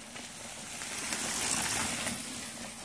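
A bicycle rushes past close by.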